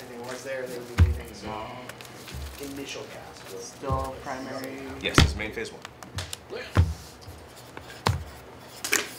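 Card boxes knock down on a padded mat.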